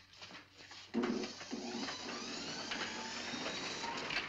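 A printing press clanks and whirs.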